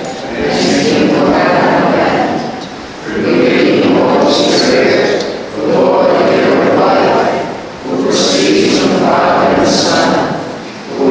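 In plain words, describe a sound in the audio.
A man intones slowly into a microphone in a reverberant room.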